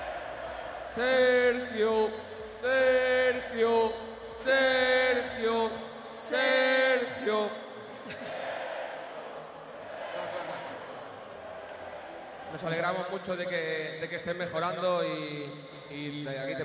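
A man sings loudly into a microphone, heard through loudspeakers.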